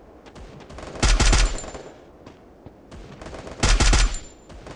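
Rapid bursts of rifle fire ring out close by.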